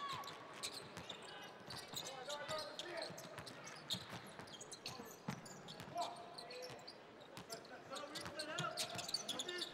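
A basketball bounces on a hardwood court in a large echoing arena.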